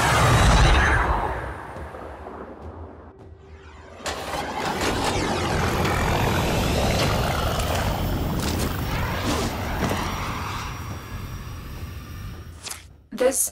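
A spacecraft engine roars and whooshes past.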